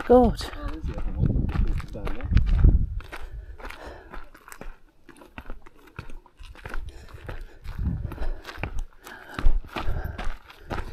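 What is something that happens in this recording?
Footsteps crunch on dry gravel and rock.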